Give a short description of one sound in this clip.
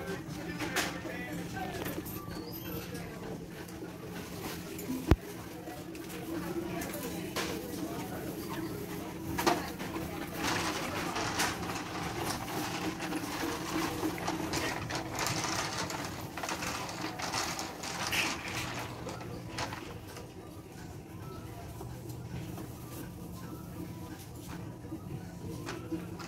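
A trolley basket's small wheels roll and rattle over a smooth floor.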